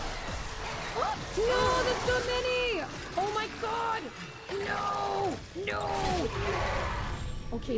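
A young woman talks and exclaims with animation into a close microphone.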